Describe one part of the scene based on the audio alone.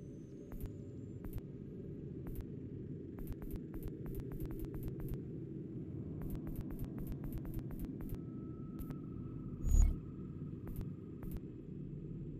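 Soft menu clicks tick quickly, one after another.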